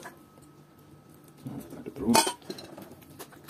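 Liquid pours from a pot into a bowl.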